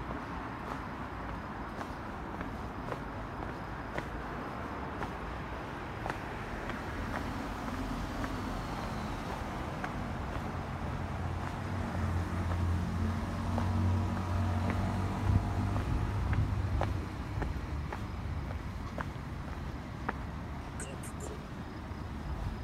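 Footsteps tap on paving at a steady walking pace.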